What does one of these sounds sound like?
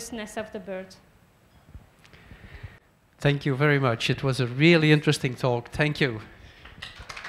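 A woman speaks calmly into a microphone at close range.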